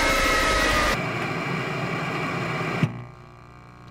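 Static hisses loudly and then cuts off.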